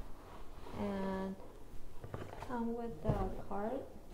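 A fabric bag rustles as it is lifted.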